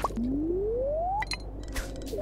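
A fishing rod casts with a quick rising whoosh.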